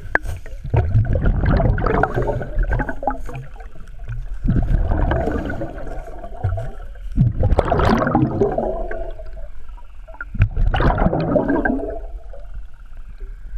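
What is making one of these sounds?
Air bubbles from a diver's breathing gurgle and rumble loudly underwater in repeated bursts.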